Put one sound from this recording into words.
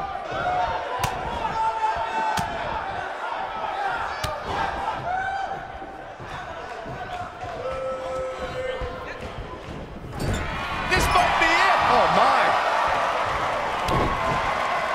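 Blows land with sharp thuds.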